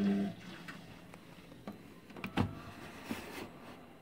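A plastic drawer slides open with a click.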